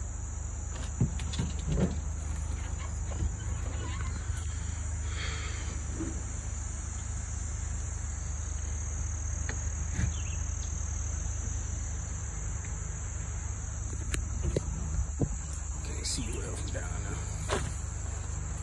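Branches and brush scrape and snap against a vehicle.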